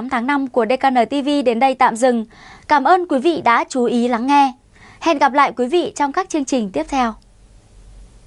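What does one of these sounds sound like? A young woman speaks clearly and steadily into a microphone, reading out.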